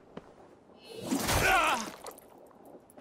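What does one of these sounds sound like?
A blade strikes with a sudden sharp blow.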